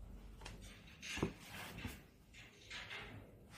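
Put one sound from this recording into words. Paper rustles and slides on a table.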